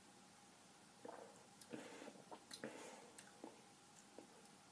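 A young man smacks his lips quietly.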